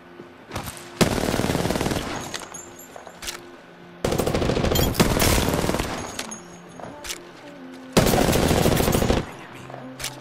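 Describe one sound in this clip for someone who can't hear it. A rapid-fire gun shoots in loud bursts.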